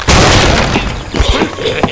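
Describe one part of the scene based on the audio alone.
Wooden and stone blocks clatter and crash down.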